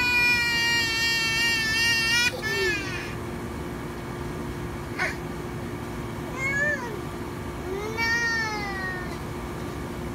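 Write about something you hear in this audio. A toddler girl wails loudly close by.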